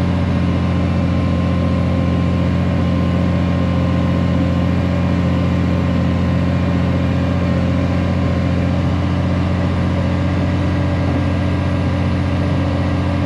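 A heavy diesel engine rumbles steadily up close.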